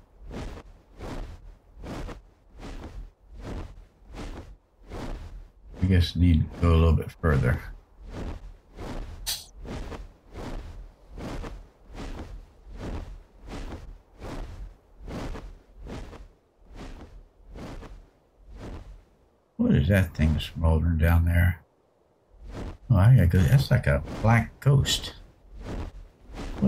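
Large wings beat in a steady, fast rhythm.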